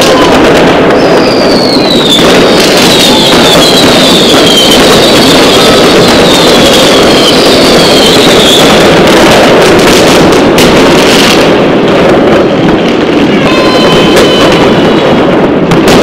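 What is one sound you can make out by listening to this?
Whistling fireworks rise with high shrieks.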